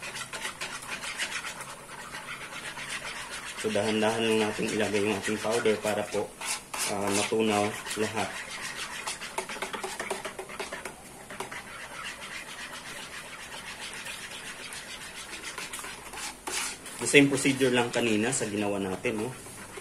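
A whisk scrapes and taps against a plastic bowl while stirring batter.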